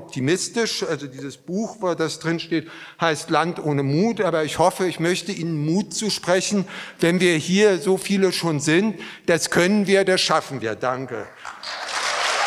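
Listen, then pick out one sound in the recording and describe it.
A middle-aged man speaks with animation through a microphone in a large room.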